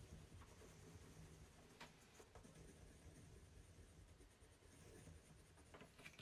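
A pencil scratches softly on a wooden spoon.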